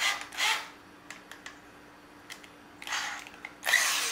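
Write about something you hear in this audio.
A drill chuck clicks.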